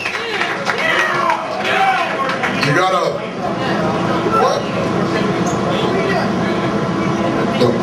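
Electric guitars play loud distorted chords.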